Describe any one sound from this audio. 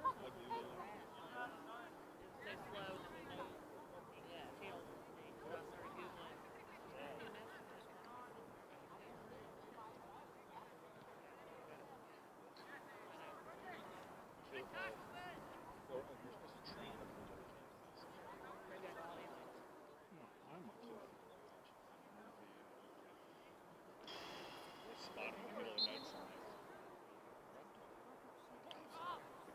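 Distant spectators and players call out across an open field.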